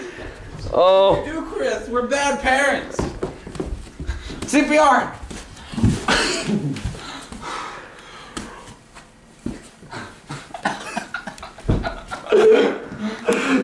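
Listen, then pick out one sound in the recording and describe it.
Young men shout and laugh loudly nearby.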